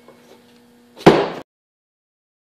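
A wooden frame knocks down with a thud.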